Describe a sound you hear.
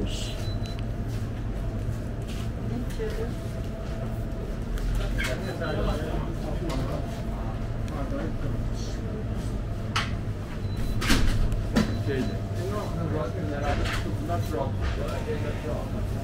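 Freezers hum steadily.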